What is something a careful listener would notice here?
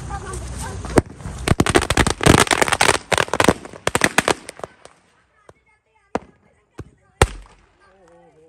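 Firecrackers burst in a rapid string of loud bangs.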